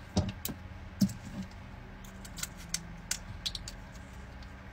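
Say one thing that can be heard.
Plastic wrapping crinkles and rustles in a woman's hands.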